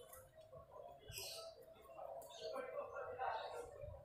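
A knife scrapes against wood.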